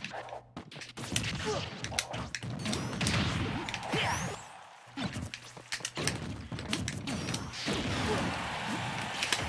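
Punches and explosions crack and thud in a fast fight.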